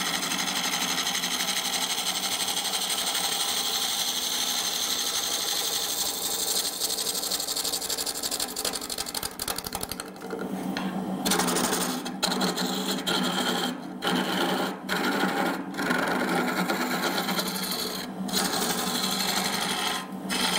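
A chisel scrapes and shaves against spinning wood.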